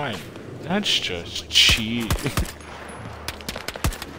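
A rifle fires single shots.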